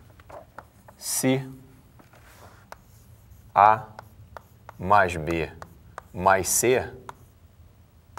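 A man speaks calmly nearby, in short bursts.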